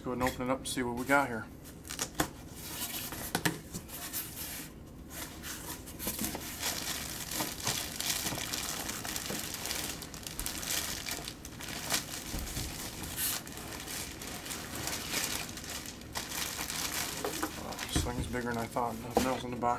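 Cardboard flaps scrape and rustle as a box is opened.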